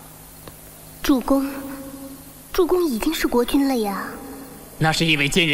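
A young woman speaks pleadingly, close by.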